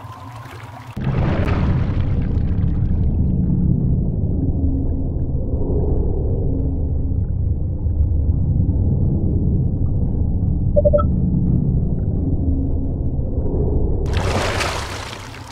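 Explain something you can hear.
Water rushes and rumbles, deep and muffled.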